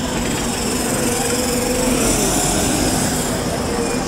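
A diesel city bus pulls away.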